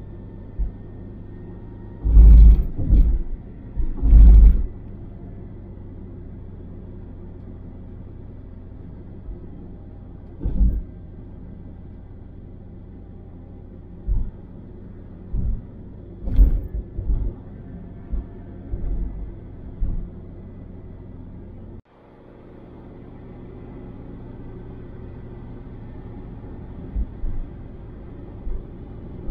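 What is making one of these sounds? A car's engine and tyres hum steadily from inside the moving car.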